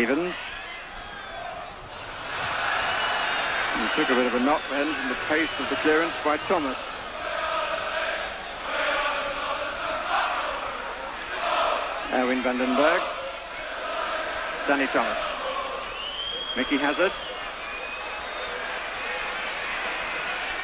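A large stadium crowd roars steadily outdoors.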